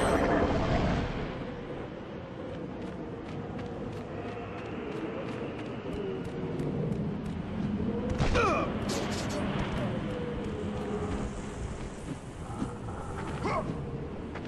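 Footsteps patter quickly while a warrior runs.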